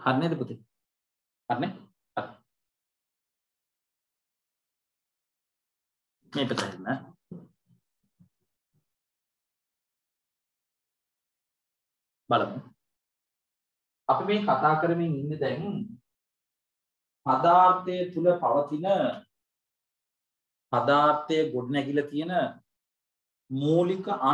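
A man speaks with animation into a nearby microphone, in short bursts with pauses.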